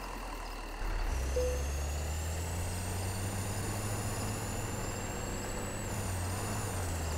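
An engine revs up as a van drives off over rough ground.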